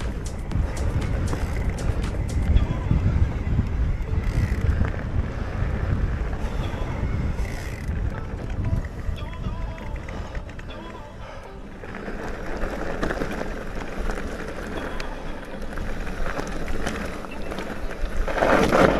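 Bicycle tyres crunch and rattle over a rough dirt track.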